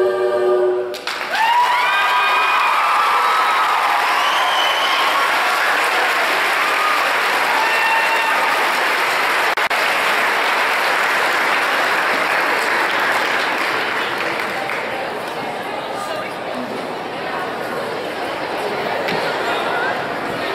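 An audience claps and cheers loudly.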